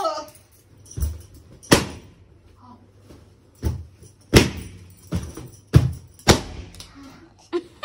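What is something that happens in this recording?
Balloons squeak and thump as they are handled.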